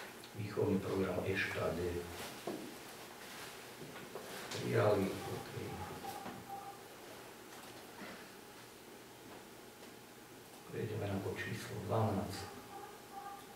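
A woman speaks calmly in a quiet room.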